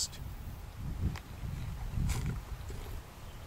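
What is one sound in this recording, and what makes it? A man bites into a crisp peach and chews.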